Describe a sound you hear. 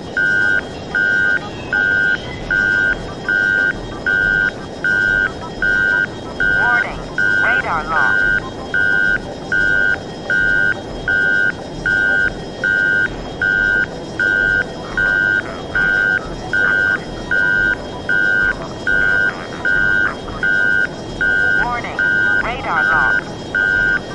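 A fighter jet's engine roars in flight.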